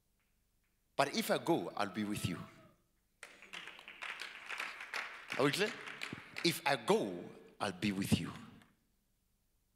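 A man speaks with animation through a microphone and loudspeakers in a large echoing hall.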